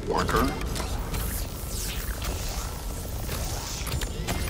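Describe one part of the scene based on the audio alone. Sparks crackle and hiss.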